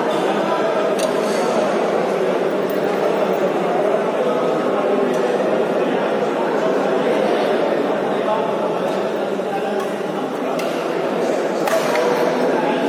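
Shuttlecocks are struck sharply by rackets.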